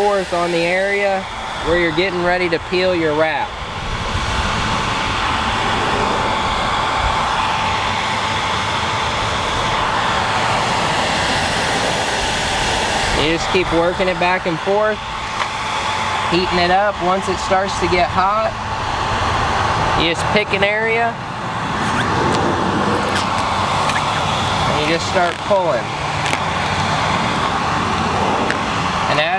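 A hair dryer blows with a steady whooshing roar.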